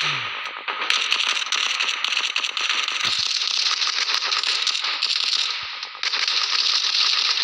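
A rifle fires in rapid, rattling bursts.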